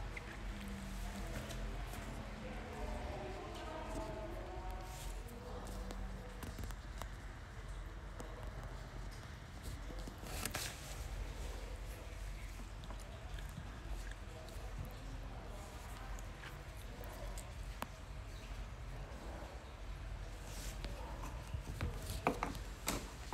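A young woman speaks softly and close to a microphone.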